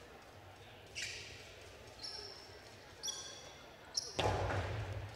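A hard ball smacks against a wall and bounces on the floor, echoing in a large hall.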